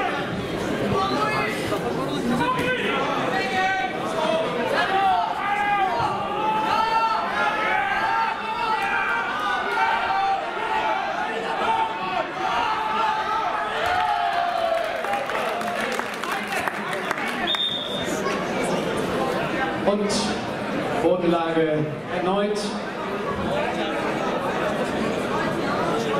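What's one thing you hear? Spectators shout and cheer in an echoing hall.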